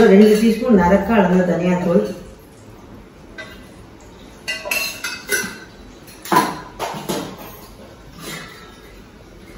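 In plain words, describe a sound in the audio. A spoon clinks against a metal tin.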